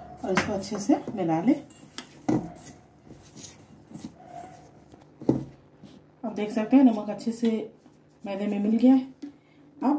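Hands rub and mix dry flour in a metal bowl with a soft rustling.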